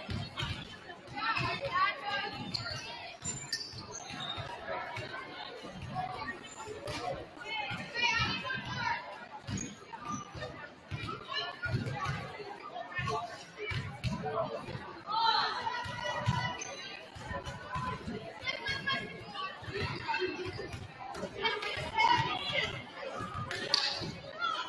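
A basketball bounces on a hard court, echoing in a large gym.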